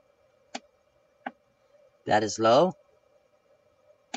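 A button clicks once.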